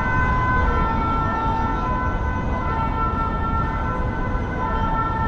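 A crowd of people murmurs and chatters at a distance outdoors.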